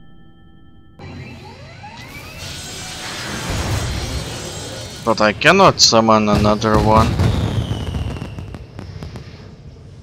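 A rocket engine roars as a spaceship lifts off.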